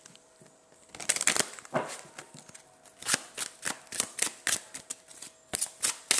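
Playing cards shuffle and riffle with quick soft clicks.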